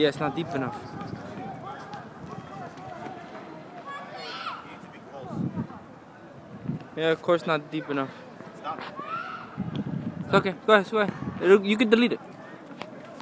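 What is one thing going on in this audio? A young man talks casually to someone close by, outdoors.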